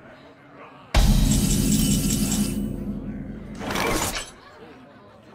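A bright chime rings out with a swelling tone.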